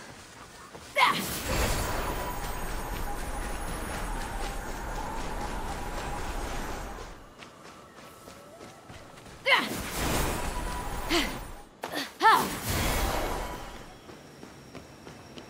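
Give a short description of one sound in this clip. A magical whooshing rush sweeps past.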